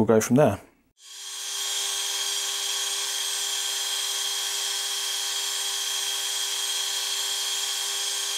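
A metal lathe starts up and whirs steadily.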